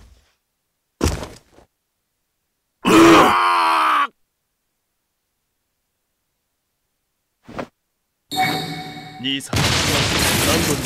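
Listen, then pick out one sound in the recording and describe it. Game sound effects of magic attacks whoosh and blast in bursts.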